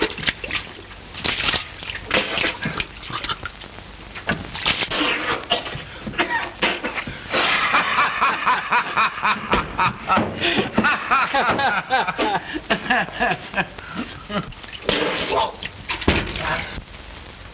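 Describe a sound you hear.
A man sputters and gasps loudly.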